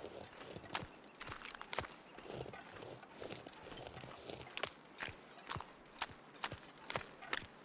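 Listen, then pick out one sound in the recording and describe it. Wind blows hard across open ice, hissing with driven snow.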